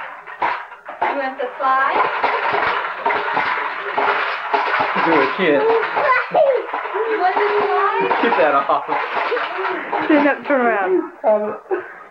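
A man talks and laughs loudly close by.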